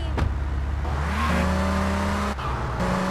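A car engine revs and the car drives off.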